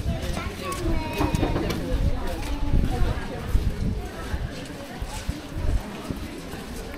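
Wind buffets a microphone.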